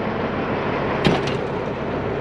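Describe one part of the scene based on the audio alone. A truck door slams shut.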